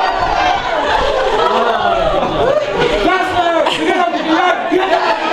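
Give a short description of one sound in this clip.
Young women laugh and squeal.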